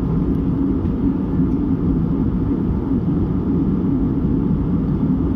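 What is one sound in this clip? Jet engines roar steadily inside an airplane cabin in flight.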